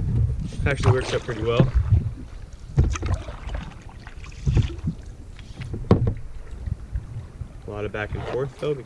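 A paddle splashes and dips into water.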